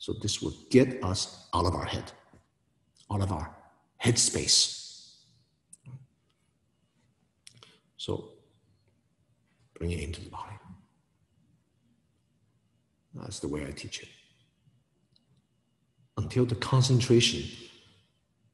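A middle-aged man speaks calmly and slowly into a nearby microphone, with pauses between phrases.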